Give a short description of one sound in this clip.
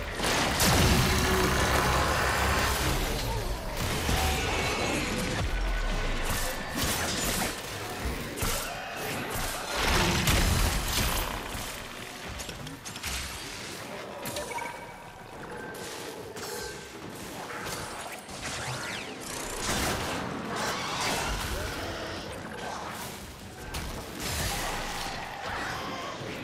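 Gunfire and blasts crackle rapidly in a video game fight.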